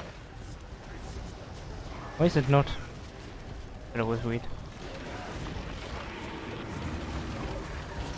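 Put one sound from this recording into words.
Game sound effects of fire and combat play.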